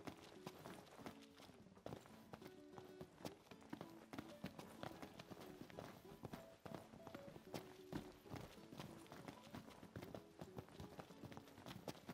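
Quick footsteps run across cobblestones.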